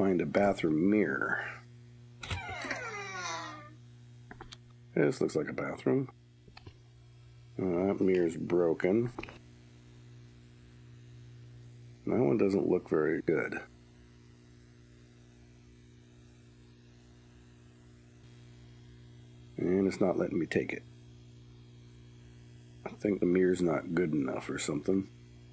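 A fluorescent light hums steadily.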